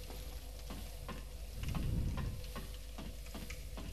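Hands and feet knock on a ladder's rungs while climbing.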